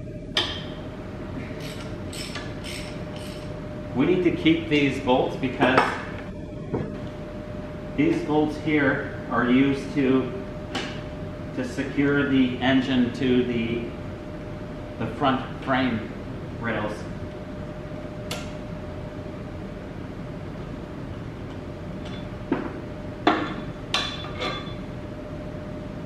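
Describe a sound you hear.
A metal wrench clicks as it turns a bolt.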